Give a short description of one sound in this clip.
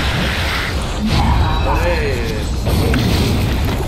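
A deep magical whoosh sweeps past.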